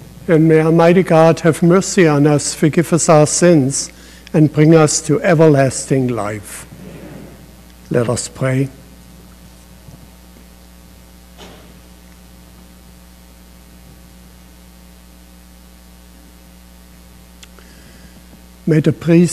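An elderly man speaks slowly and calmly through a microphone in an echoing hall.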